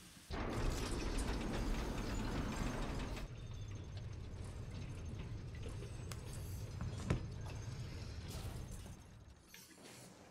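Heavy gears rumble and grind loudly.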